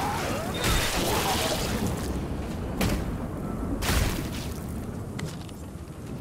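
Heavy blows thud and flesh squelches in a violent struggle.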